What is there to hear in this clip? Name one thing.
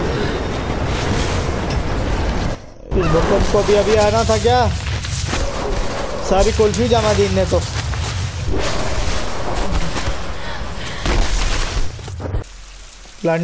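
Snow rumbles and roars down a mountainside.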